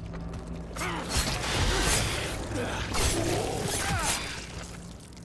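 A creature screeches and growls up close.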